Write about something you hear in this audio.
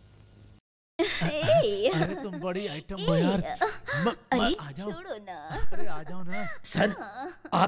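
A man sings into a microphone with feeling.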